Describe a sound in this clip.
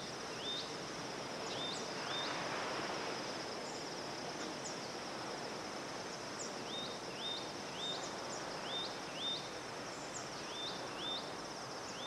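Gentle waves wash softly against the shore.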